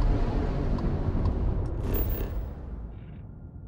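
A spaceship engine rumbles deeply and fades away.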